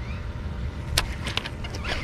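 A fishing reel clicks and rattles.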